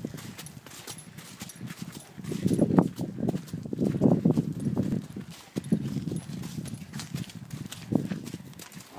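A metal lead chain jingles on a horse's halter.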